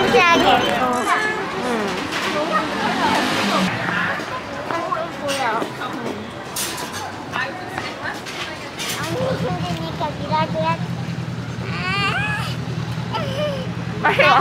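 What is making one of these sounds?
Young girls chatter close by.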